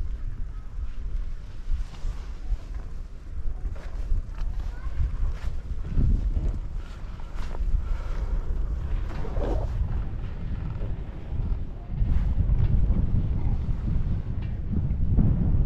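Wind buffets outdoors with a low, gusty rumble.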